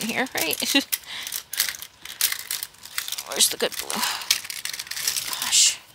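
Pens and markers clatter together.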